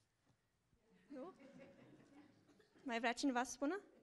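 A young woman speaks through a microphone in short bursts.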